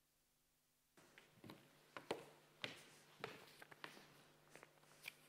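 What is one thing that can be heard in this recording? Footsteps tap on a stage floor.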